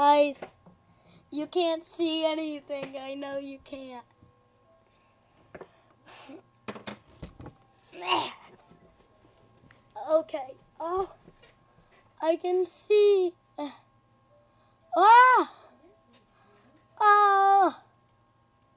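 A child talks and exclaims excitedly close by.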